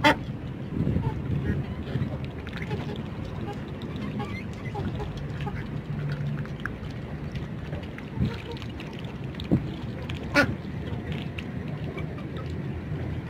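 Chickens peck at scattered greens.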